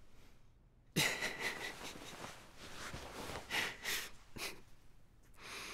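A young man laughs.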